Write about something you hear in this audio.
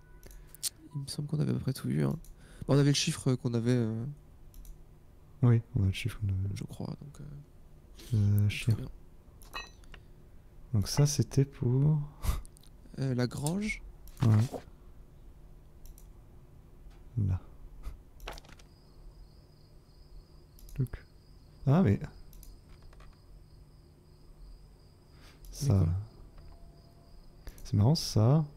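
A man talks casually and close to a microphone, in short bursts.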